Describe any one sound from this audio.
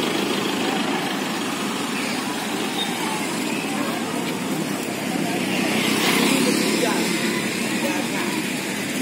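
Outdoors, steady street noise fills the air.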